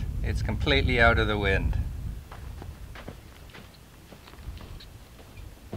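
Footsteps crunch on stony sand.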